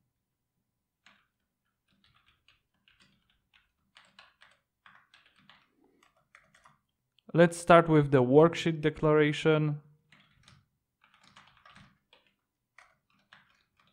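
Keyboard keys click softly.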